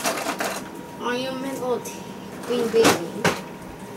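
A young boy speaks briefly nearby.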